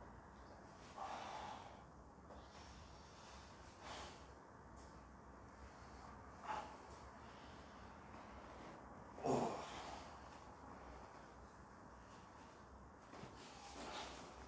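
A young man groans in short bursts, close by.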